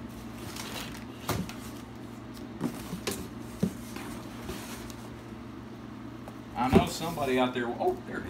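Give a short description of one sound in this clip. Cardboard rustles and crinkles as a box is handled.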